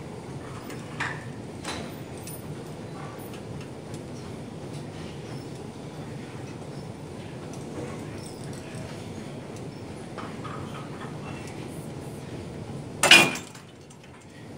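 Weights on a cable machine clank and rattle.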